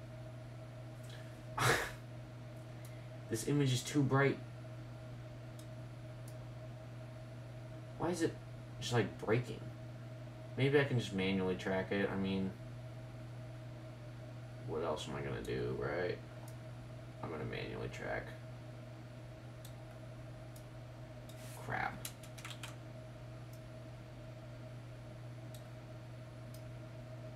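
A computer hums steadily nearby.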